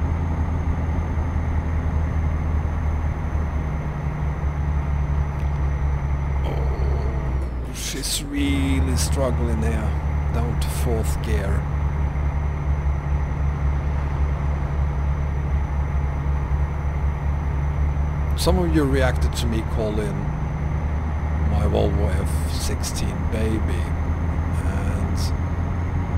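A truck engine rumbles steadily as the truck drives along.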